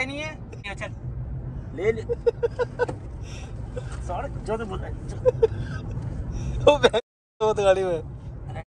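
Young men talk and laugh excitedly close by.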